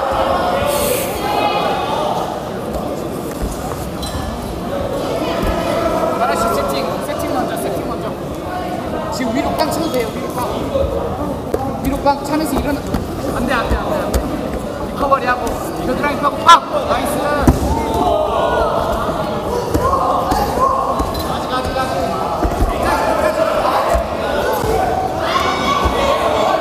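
A crowd murmurs and shouts throughout a large echoing hall.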